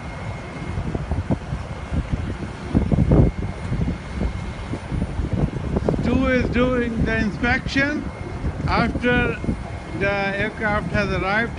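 Wind rumbles against the microphone.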